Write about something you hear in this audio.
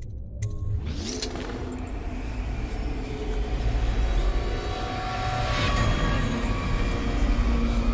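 A glowing device hums and whines with a wavering, rising tone.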